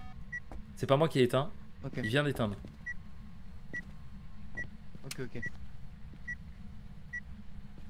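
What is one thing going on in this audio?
An electronic device beeps at a steady pace.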